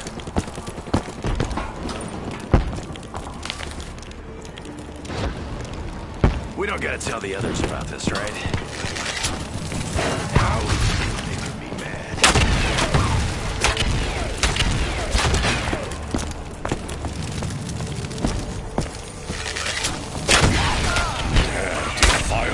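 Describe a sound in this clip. Game weapon shots crack and thump repeatedly.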